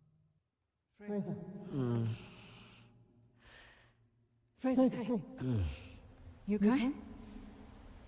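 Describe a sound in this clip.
A young woman speaks quietly and tensely, close by.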